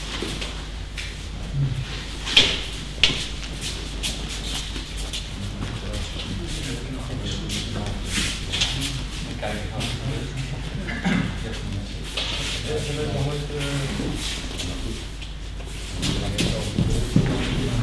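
Bare feet thump and shuffle on a mat.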